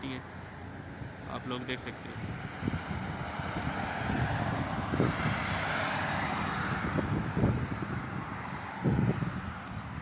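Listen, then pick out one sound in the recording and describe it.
Wind buffets and rumbles outdoors.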